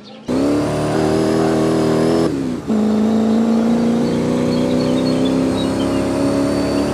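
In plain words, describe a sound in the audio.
A sports car engine roars loudly at high revs.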